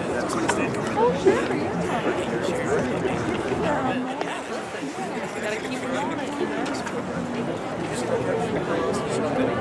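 A brass and wind band plays a festive tune outdoors.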